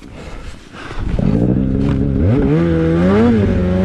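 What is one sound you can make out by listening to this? A snowmobile engine revs up loudly, its pitch rising and falling.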